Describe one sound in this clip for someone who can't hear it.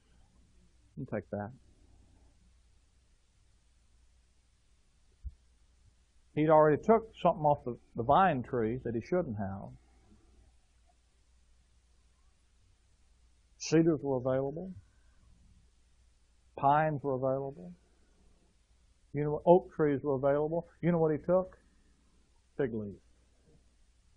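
A man speaks calmly into a microphone, with long pauses.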